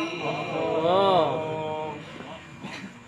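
A young woman chants melodically into a microphone, heard through a loudspeaker with echo.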